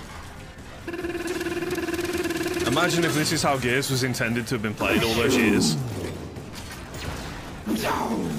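Gunfire rattles in a game.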